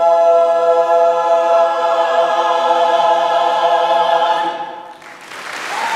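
A choir sings a sustained chord in a large hall.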